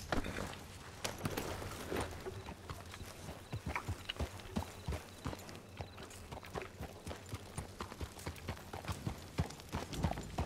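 A horse's hooves clop steadily on a dirt road.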